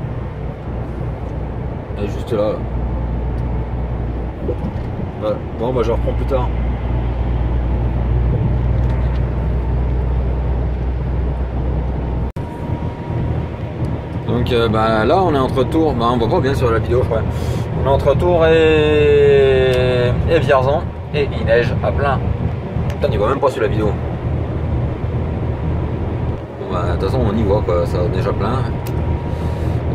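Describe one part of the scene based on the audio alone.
A truck engine drones steadily while driving.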